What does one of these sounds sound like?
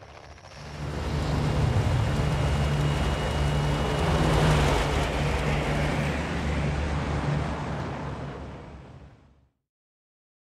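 Propeller engines of a large plane drone loudly with a rushing wind.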